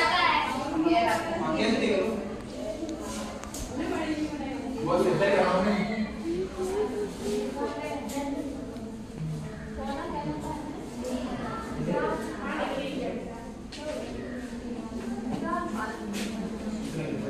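Students chatter quietly in the background.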